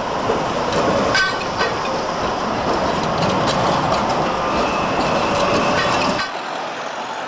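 A tram rolls past close by with a rumble.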